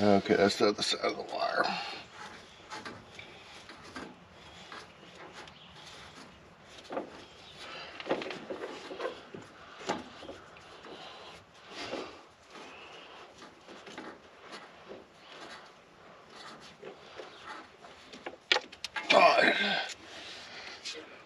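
A man talks calmly up close.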